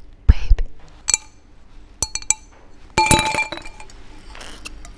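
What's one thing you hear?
Glass clinks as straws tap against a drinking glass.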